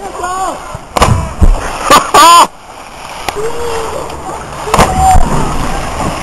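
A body splashes hard into water.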